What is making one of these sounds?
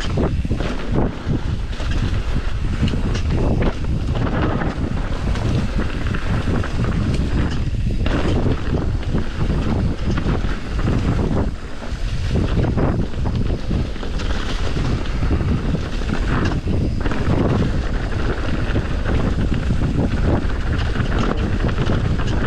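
Tyres roll and crunch over a rough dirt trail.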